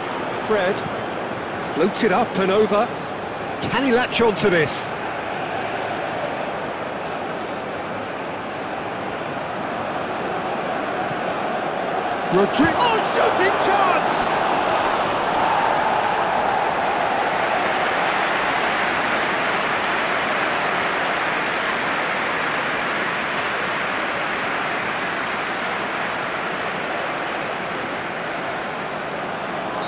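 A large stadium crowd roars steadily, swelling louder midway.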